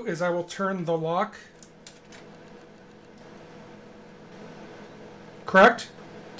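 A plastic drive tray clicks and rattles as it is pulled out.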